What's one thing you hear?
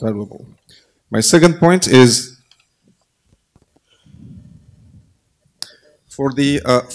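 A man speaks into a microphone in a large echoing hall, pausing between phrases.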